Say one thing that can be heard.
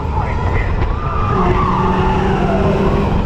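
Young riders scream and cheer.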